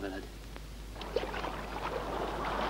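Water splashes as a man wades through shallow water.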